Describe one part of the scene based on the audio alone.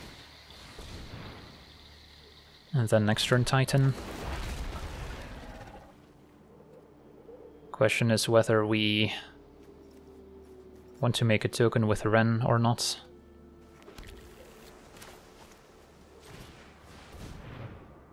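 A magical whoosh sweeps past.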